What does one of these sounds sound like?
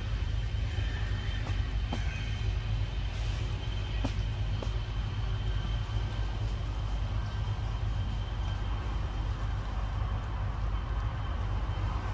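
A monkey chews and munches on fruit close by.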